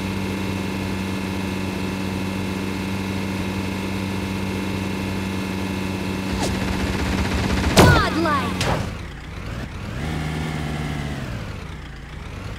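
A buggy engine drones steadily, changing pitch as it drives.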